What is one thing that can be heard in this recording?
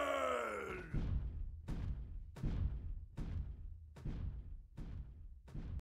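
Heavy footsteps thud at a steady pace.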